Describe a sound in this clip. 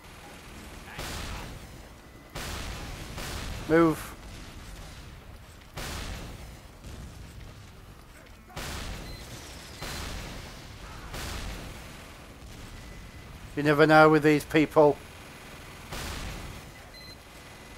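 Weapons fire in loud bursts, again and again.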